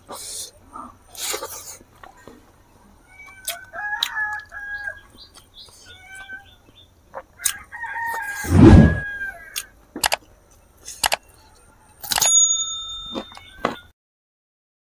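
A man chews and smacks his lips loudly close to a microphone.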